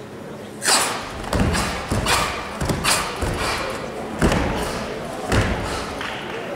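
Bare feet thump on a mat.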